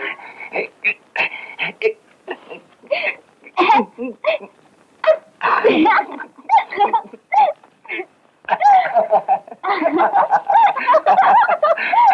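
A young woman laughs and shrieks excitedly nearby.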